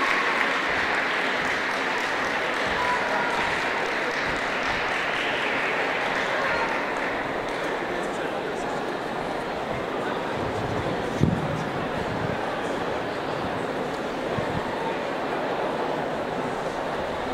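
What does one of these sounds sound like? An orchestra of strings plays along with a band.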